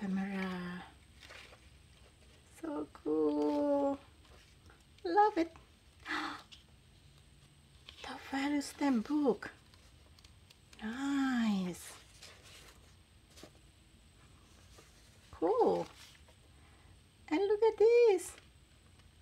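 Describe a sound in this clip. Paper rustles and crinkles as pages are handled and turned.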